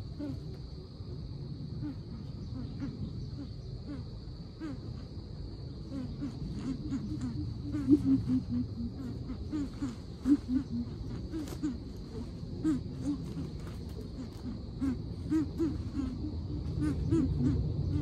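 A coucal gives deep, repeated hooting calls.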